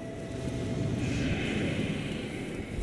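Magic bolts hiss and whoosh through the air.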